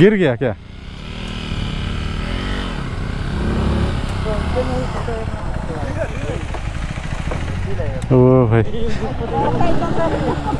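A motorcycle engine idles with a low, steady rumble.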